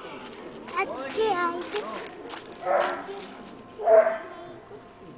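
A young child squeals and shouts nearby.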